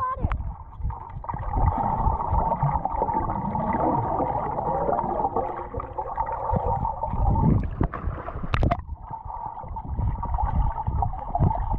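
Underwater, bubbles rush and gurgle in a muffled roar.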